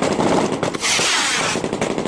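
A machine gun fires nearby.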